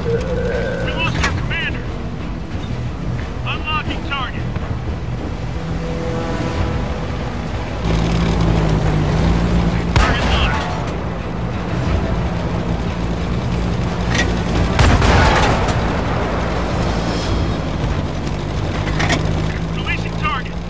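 A tank engine rumbles and whines steadily.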